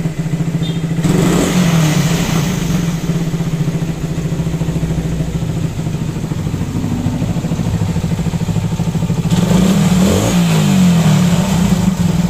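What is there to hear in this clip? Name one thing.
A motorcycle engine briefly revs up and settles back.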